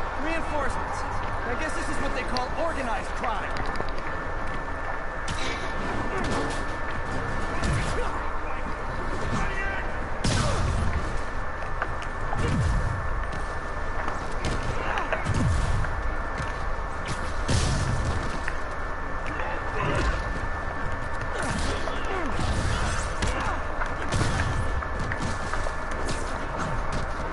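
Punches and heavy thuds land in a fast fight.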